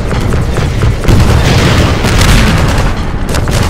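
An explosion booms with a deep roar.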